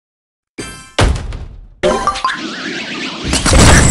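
A cartoon bomb explodes with a bang.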